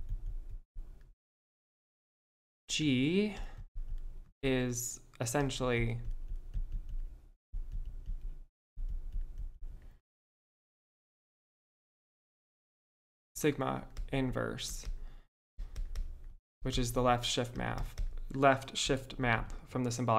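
A man speaks calmly and explains into a close microphone, with pauses.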